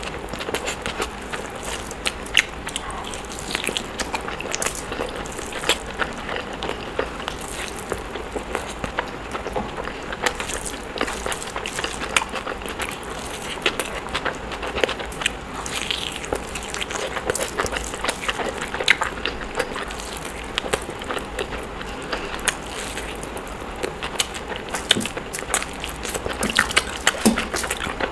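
A young woman chews food noisily and smacks her lips close to a microphone.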